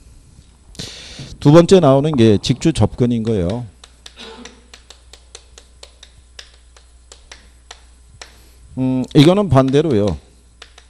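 A middle-aged man speaks with animation into a microphone, close by.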